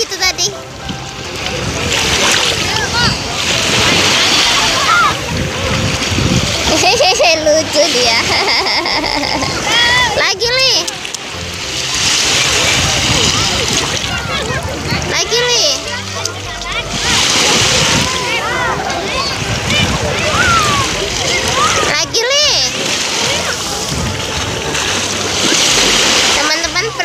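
A young child splashes in shallow water.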